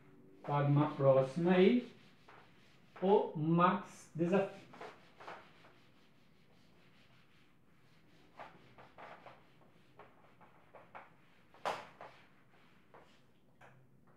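An eraser rubs on a whiteboard with soft squeaks and swishes.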